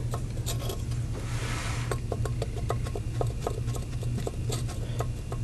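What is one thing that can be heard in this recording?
A metal piston clicks and scrapes lightly inside a cylinder.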